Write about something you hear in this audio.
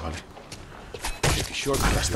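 A blade hacks into flesh with wet, heavy thuds.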